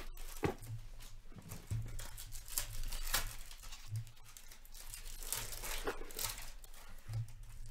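Cardboard and plastic wrap rustle and crinkle as packs are handled.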